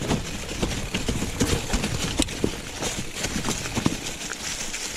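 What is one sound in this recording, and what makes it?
A bicycle frame rattles and clunks over bumps.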